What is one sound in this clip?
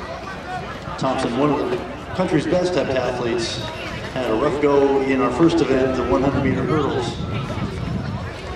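Several men and women talk nearby outdoors.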